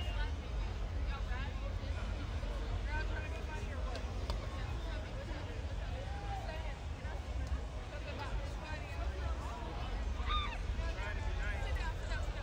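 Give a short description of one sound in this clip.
A crowd chatters and calls out outdoors on a busy street.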